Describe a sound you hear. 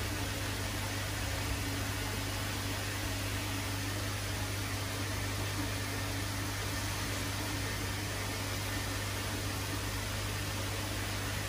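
Air bubbles fizz and gurgle steadily in water.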